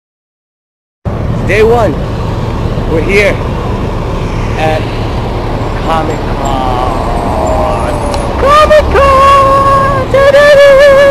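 Street traffic hums steadily outdoors.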